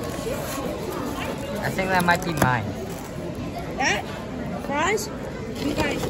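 A foam food box squeaks as its lid is opened.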